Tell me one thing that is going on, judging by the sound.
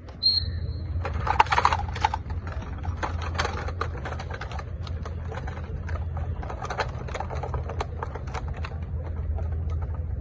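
Rifles clatter and click as many hands handle them.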